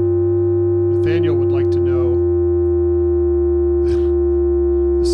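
A second man speaks calmly into a microphone.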